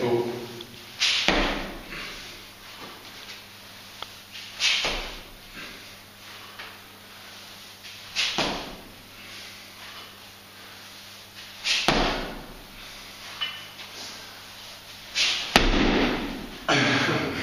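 A man exhales sharply with each lift.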